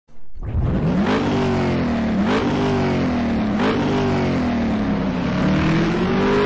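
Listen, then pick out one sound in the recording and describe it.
An engine starts and revs up sharply several times, then idles high.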